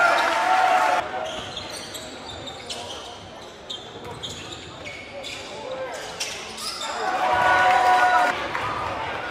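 A basketball bounces in quick, steady dribbles.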